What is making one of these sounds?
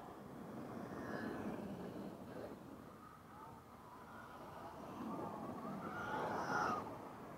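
Tyres of remote-control cars crunch and skid on dirt.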